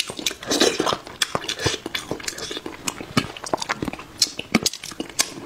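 A man chews and smacks his lips wetly, close up.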